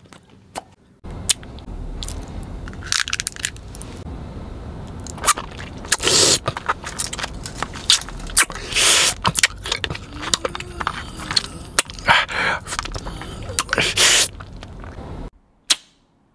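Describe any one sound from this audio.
A man crunches and chews hard candy close up.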